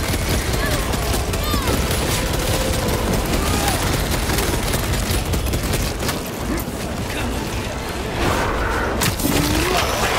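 Loud explosions boom and rumble.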